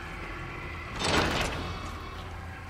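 A door opens with a whoosh.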